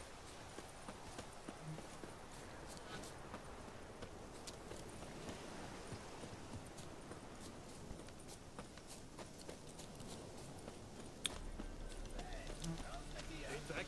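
Footsteps rustle through grass and brush at a steady run.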